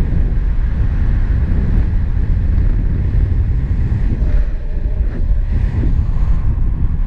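Strong wind rushes and buffets against a microphone.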